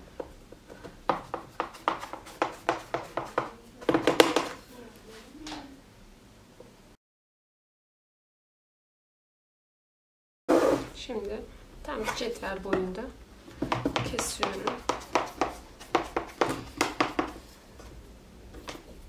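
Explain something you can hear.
A knife cuts through crisp layered pastry with quick crunching scrapes.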